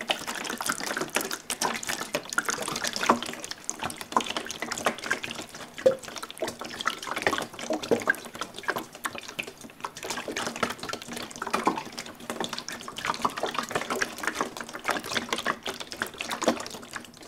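Fingernails tap and scratch on a hollow plastic jug, close up.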